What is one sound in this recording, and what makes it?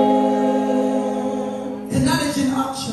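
A woman sings loudly through a microphone.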